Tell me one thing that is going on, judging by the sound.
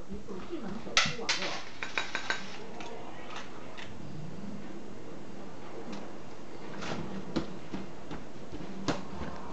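Small objects knock and rattle as a toddler rummages on a shelf.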